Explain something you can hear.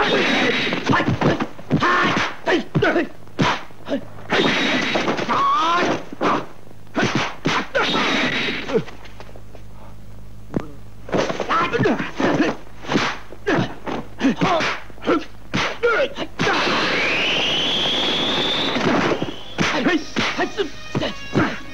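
A young man shouts and yells as he fights.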